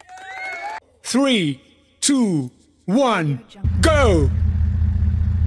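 Countdown tones sound in short, falling bursts.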